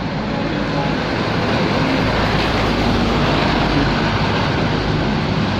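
A heavy truck engine rumbles loudly as it passes close by.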